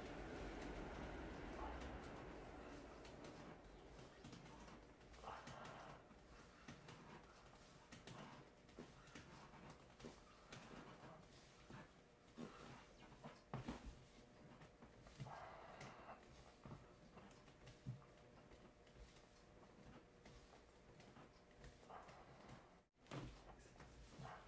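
Hands press and rub over a cloth, making soft rustling sounds.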